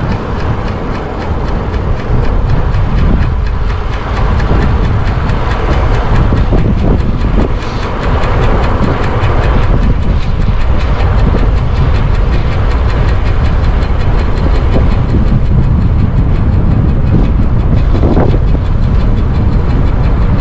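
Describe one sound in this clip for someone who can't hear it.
Tyres hum on a rough road.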